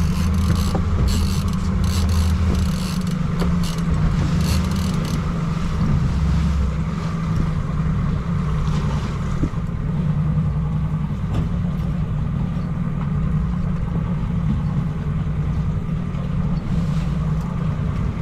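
Wind blusters past outdoors.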